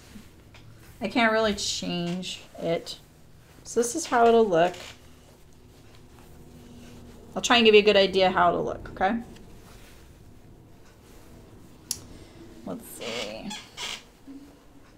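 An elderly woman speaks calmly into a close microphone, in short phrases.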